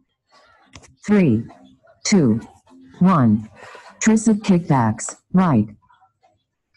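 A woman calls out loudly and with energy over an online call.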